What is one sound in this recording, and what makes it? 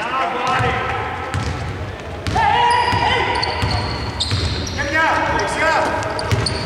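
A basketball bounces with dull thumps.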